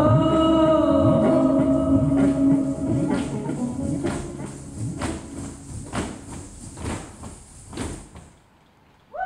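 Dancers' feet stamp rhythmically on a wooden stage.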